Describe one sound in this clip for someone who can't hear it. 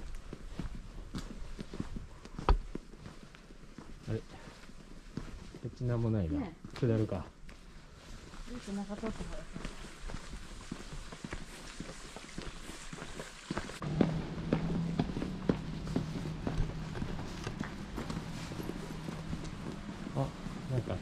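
Footsteps walk steadily on a paved lane outdoors.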